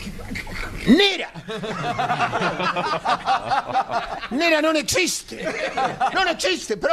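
A younger man talks quickly into a microphone.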